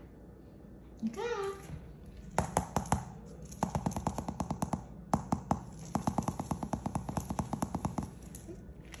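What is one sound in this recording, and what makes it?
A guinea pig squeaks and chirps in quick bursts.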